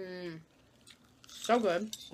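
A man chews crunchy salad loudly close by.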